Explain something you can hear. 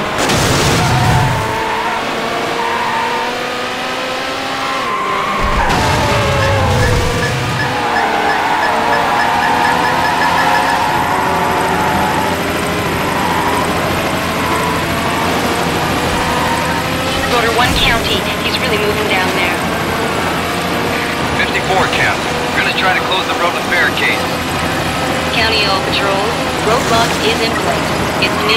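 A racing car engine roars and whines steadily, rising and falling in pitch as it speeds up and slows down.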